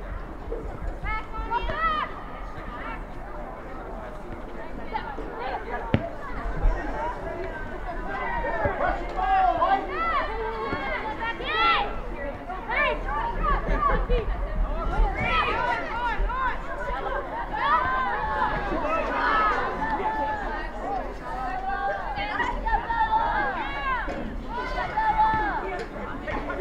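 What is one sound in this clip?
Young women shout and call to each other across an open outdoor field.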